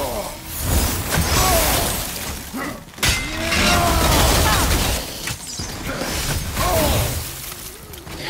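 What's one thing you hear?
Icy blasts burst with heavy booms.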